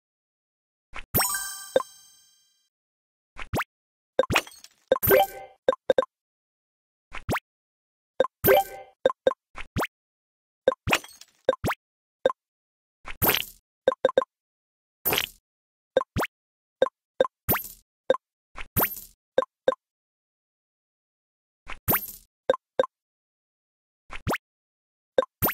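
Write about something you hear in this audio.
Short electronic chimes and pops sound again and again.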